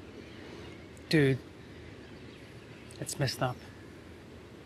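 A man speaks calmly in short phrases nearby.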